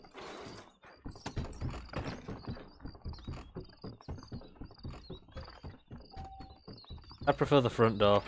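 Boots thud on wooden boards.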